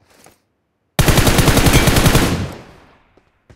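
A rifle fires a rapid, loud burst.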